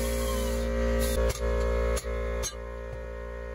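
A hammer strikes metal in sharp blows.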